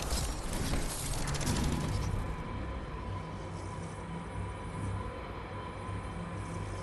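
Wind rushes steadily past a glider in flight, louder at first and then softer.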